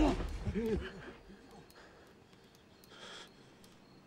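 A young man breathes heavily and fearfully close by.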